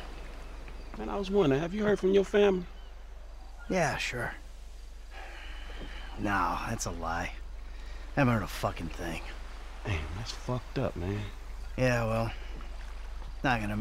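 A second man answers in a relaxed, deep voice.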